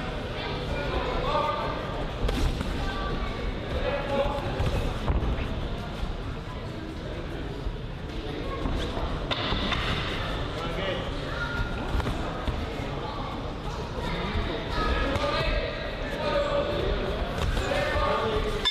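Spectators shout and call out in an echoing hall.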